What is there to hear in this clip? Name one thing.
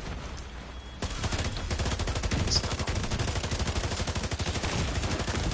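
A rifle fires in rapid, steady bursts.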